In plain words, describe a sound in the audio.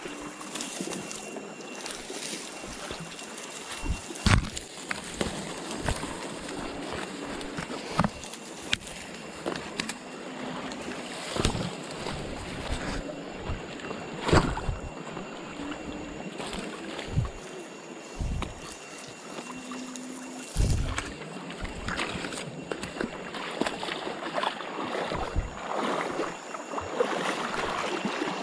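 A shallow river flows and babbles over stones.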